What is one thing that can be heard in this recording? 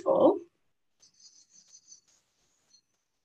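Crayon scrapes softly on paper.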